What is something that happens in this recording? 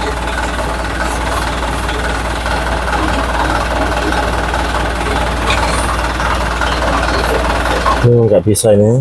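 Metal engine parts clink and tap as they are handled.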